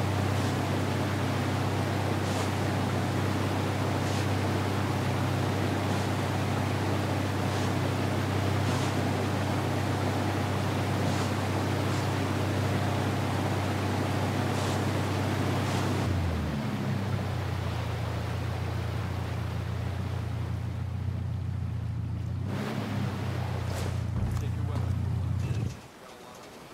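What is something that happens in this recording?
An outboard motor drones steadily as a boat speeds over water.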